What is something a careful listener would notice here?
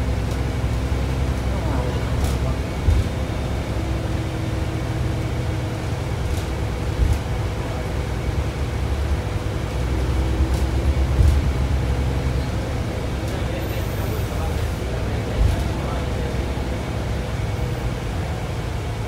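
A train rumbles steadily along the tracks, heard from inside the carriage.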